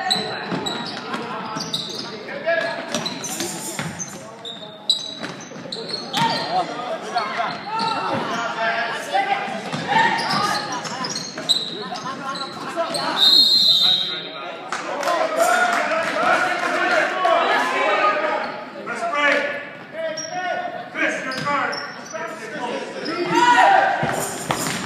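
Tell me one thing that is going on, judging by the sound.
Children and adults shout and chatter around the court.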